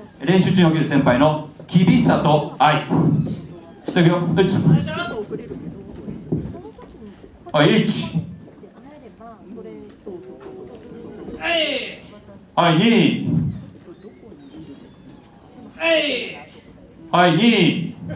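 A man speaks with animation through a microphone over loudspeakers in a large echoing hall.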